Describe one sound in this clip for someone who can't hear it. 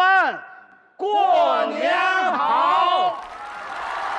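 Several men call out a greeting together through microphones.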